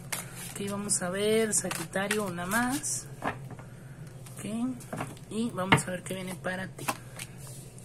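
A deck of cards is shuffled, the cards flicking and rustling.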